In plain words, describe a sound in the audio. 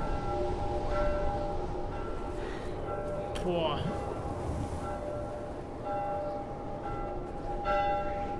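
Footsteps crunch slowly through deep snow.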